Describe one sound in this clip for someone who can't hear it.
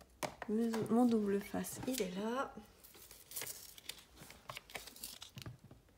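Adhesive tape is pulled from a roll with a sticky rasp.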